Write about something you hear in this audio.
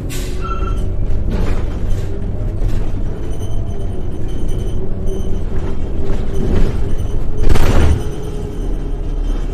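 A bus engine rumbles low and steady while the bus drives along.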